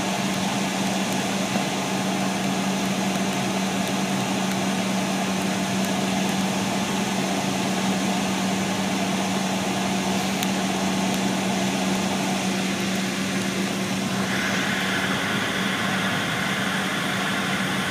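A vehicle's engine hums steadily from inside as it drives along.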